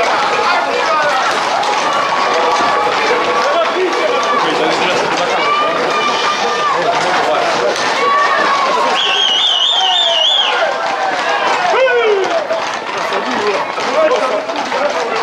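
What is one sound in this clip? Horses' hooves clatter on asphalt.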